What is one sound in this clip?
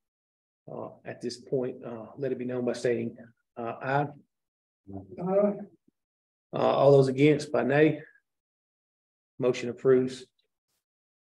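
A man speaks calmly in short phrases, heard from across a room.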